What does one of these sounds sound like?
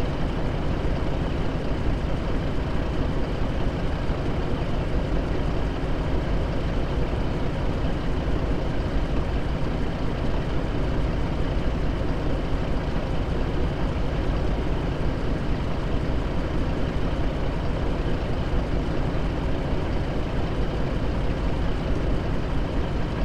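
A big diesel truck engine idles with a steady, deep rumble.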